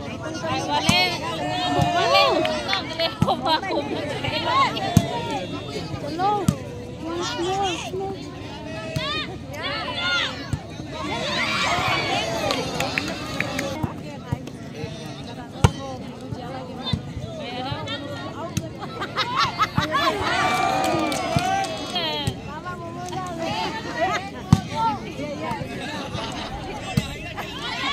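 A volleyball thuds sharply as players hit it.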